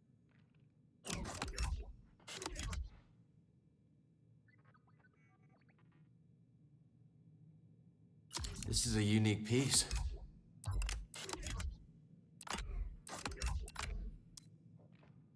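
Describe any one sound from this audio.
Metal parts slide and clank into place with a whoosh.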